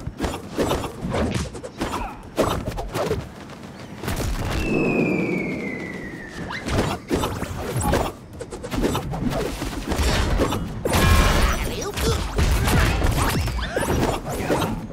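Cartoon hits, whooshes and effects from a fighting video game sound in quick bursts.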